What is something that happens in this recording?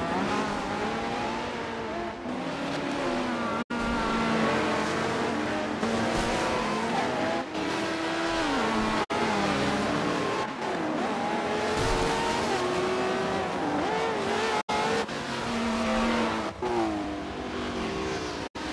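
Several racing car engines roar and whine loudly as the cars speed past, rising and falling in pitch as they change gear.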